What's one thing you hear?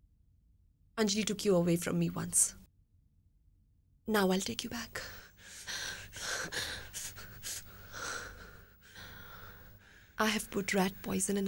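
A woman speaks close by in a low, tense voice.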